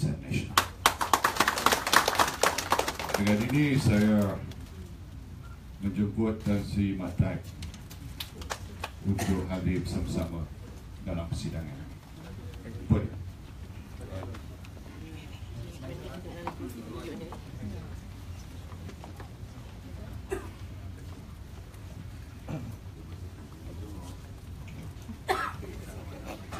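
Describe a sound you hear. People in a crowd murmur and chatter nearby.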